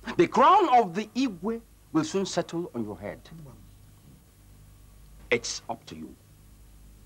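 A middle-aged man speaks with animation, close by.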